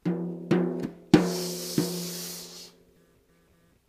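A drum is struck several times and rings out.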